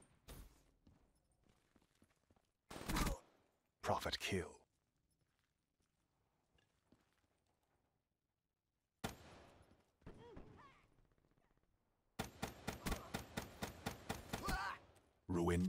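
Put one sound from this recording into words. Gunfire crackles in short, rapid bursts.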